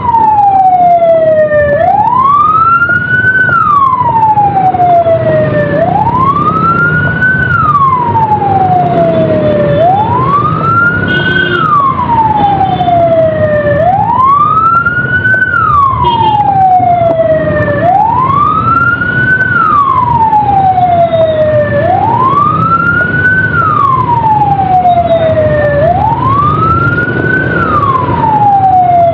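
A siren wails close by, rising and falling steadily.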